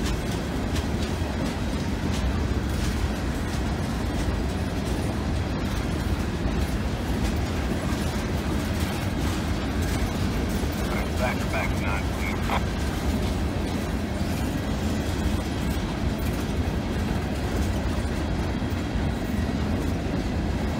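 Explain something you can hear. A freight train rumbles steadily past close by.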